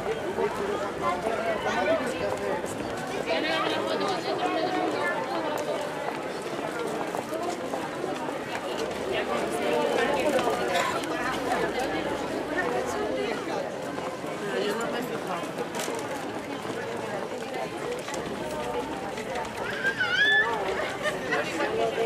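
Footsteps shuffle on a paved street.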